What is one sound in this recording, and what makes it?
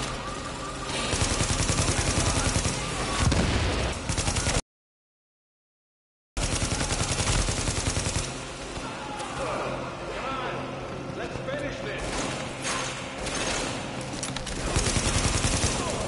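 A rifle fires.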